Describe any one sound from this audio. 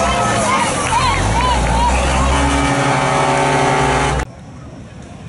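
A heavy truck engine roars loudly as a truck speeds past.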